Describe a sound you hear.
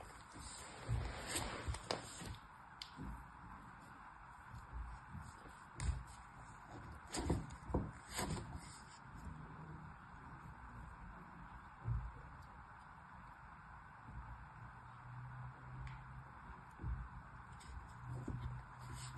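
Fingers press and pat soft sand with soft crunching sounds.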